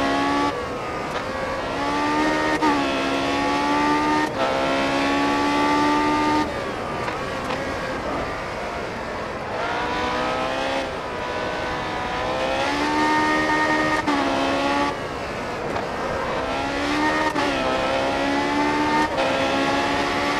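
A racing car engine whines loudly, rising in pitch as it speeds up and dropping with each gear change and braking.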